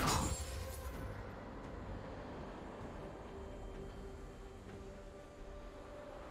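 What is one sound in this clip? Game combat sound effects burst out with a sharp magical whoosh, then settle into a low rumble.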